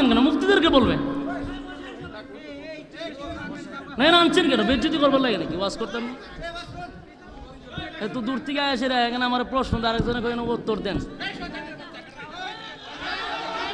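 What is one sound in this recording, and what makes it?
A man speaks with fervour through a loudspeaker system.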